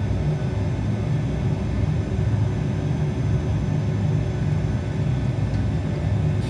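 Jet engines rumble steadily as an airliner taxis.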